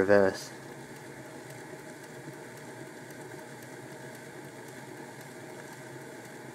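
A small model locomotive's motor hums and whirs steadily as its wheels spin on rollers.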